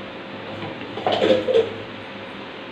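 A wooden spatula scrapes and knocks inside a metal bowl.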